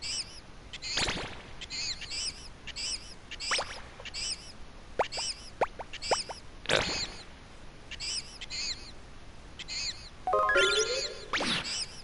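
Short electronic menu chimes sound as options are selected.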